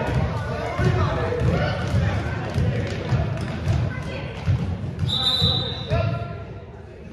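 A basketball bounces on a floor in an echoing hall.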